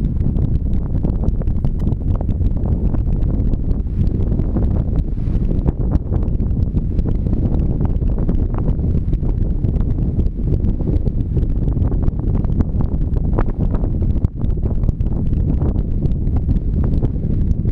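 Strong wind buffets and roars outdoors.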